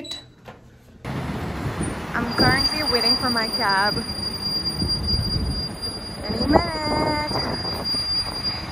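Traffic rumbles by on a busy street outdoors.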